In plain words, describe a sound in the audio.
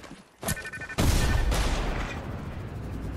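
A loud magical whoosh bursts out as a glowing shield opens.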